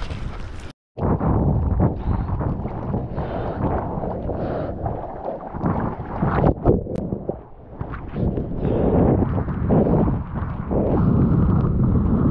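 Choppy sea water splashes against a surfboard.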